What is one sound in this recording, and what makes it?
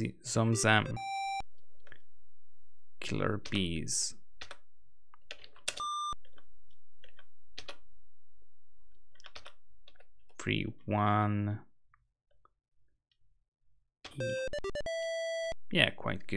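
A computer game gives short electronic beeps.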